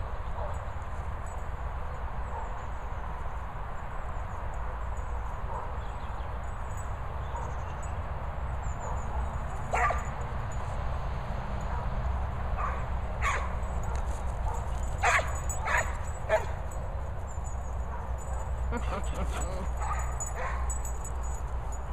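Wind rumbles outdoors across an open field.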